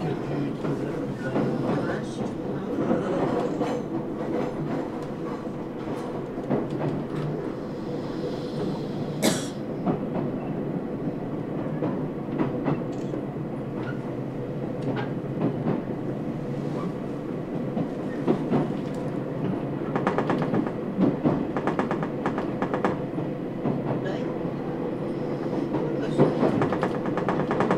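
Train wheels clatter and click over rail joints.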